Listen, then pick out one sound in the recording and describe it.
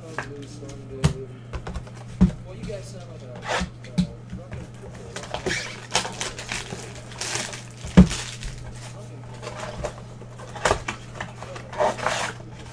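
A cardboard box knocks and scrapes as it is handled and torn open.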